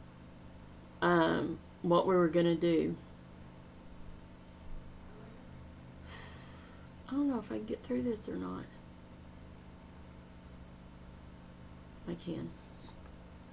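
A middle-aged woman speaks calmly and slowly, close to a microphone, with long pauses.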